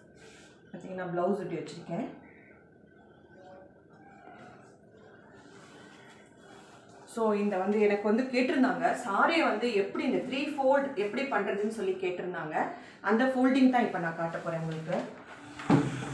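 A middle-aged woman speaks calmly and clearly, close by.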